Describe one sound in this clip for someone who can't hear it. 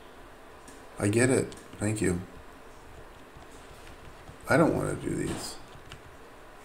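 A man speaks calmly into a microphone in short bursts.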